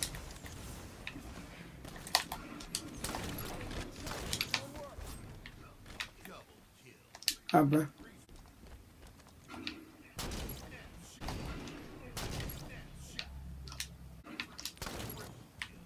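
Rifle gunshots fire in short bursts.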